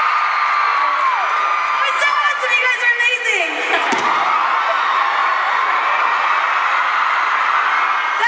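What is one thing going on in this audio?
A large crowd cheers and screams in a big echoing hall.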